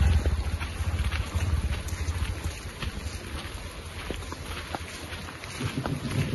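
Footsteps crunch slowly over wet ground outdoors.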